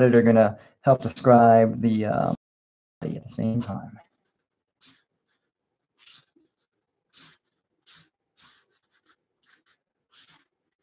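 A felt marker squeaks and scratches across paper in short strokes.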